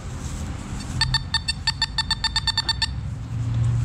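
A metal detector beeps in quick, steady pulses.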